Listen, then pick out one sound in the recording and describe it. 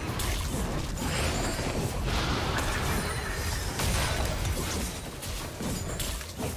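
Spell effects crackle and burst in a fast fight.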